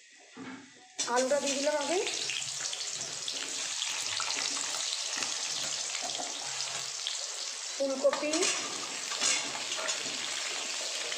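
Potato chunks sizzle in hot oil in a wok.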